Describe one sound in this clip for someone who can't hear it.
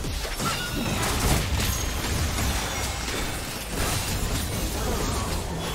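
Spell effects whoosh, crackle and burst in a busy game fight.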